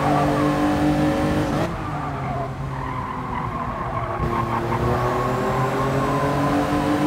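A racing car engine drones steadily, dropping in pitch as it shifts down and then rising again.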